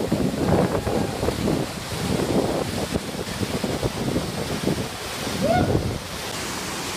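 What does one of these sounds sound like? A man splashes into a pool of water.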